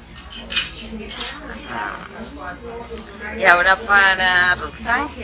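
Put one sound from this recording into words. A young woman speaks cheerfully and close up.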